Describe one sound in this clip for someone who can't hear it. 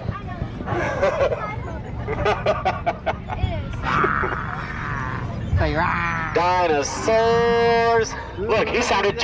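Men and women chatter in an outdoor crowd.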